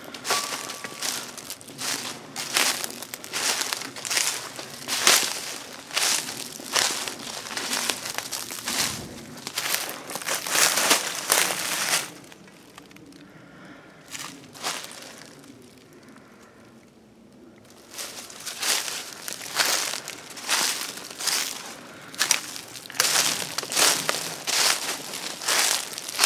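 Footsteps crunch through dry leaves at a steady walking pace.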